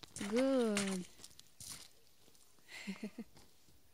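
A horse slurps water from a puddle.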